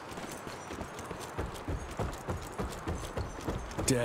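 Footsteps thud on a wooden bridge.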